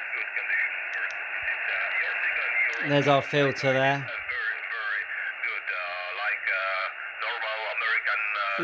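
A man's voice talks through a radio loudspeaker, thin and crackly.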